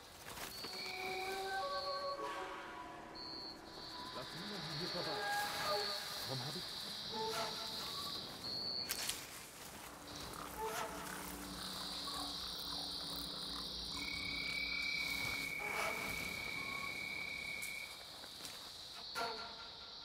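Tall grass rustles as a figure creeps through it.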